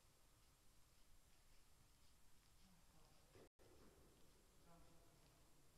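Shoes scuff softly on a hard court.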